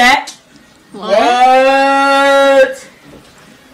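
A young man sings out a long, loud held note.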